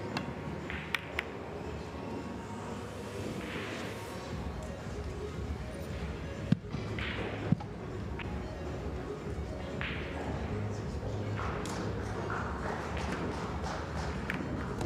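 Pool balls click sharply together.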